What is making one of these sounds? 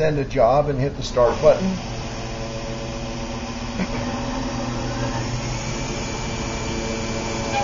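A milling machine's spindle whirs with a steady, humming whine.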